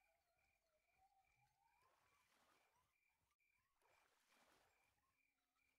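A fishing reel whirs as line is reeled in.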